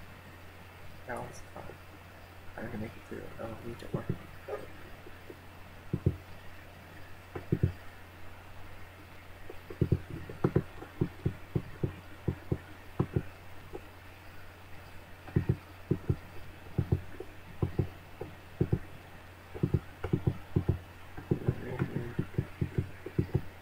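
A young man speaks quietly and briefly into a nearby microphone.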